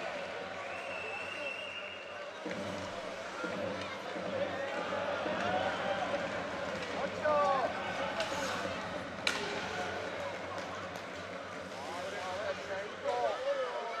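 Ice skates scrape and hiss on the ice.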